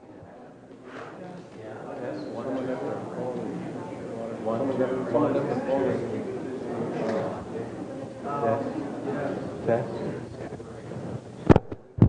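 An elderly man reads aloud calmly through a microphone in an echoing hall.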